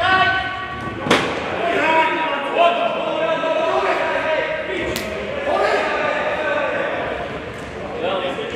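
Men shout and call out across an echoing hall.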